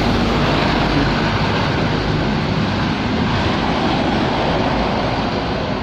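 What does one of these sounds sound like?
A second truck drives past with a rattling engine.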